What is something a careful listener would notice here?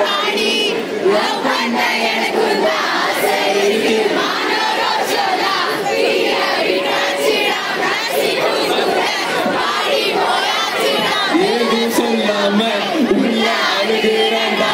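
A man sings into a microphone over loudspeakers.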